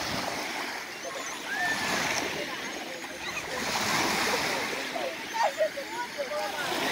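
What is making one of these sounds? Gentle waves lap and splash outdoors.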